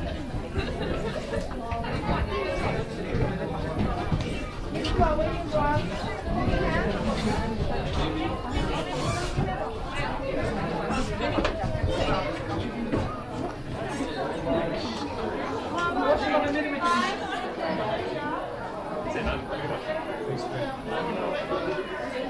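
Footsteps shuffle as a crowd walks slowly.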